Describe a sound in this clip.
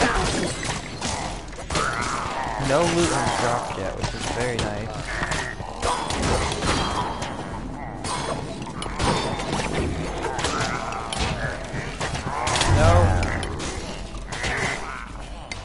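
Magic blasts crackle and zap.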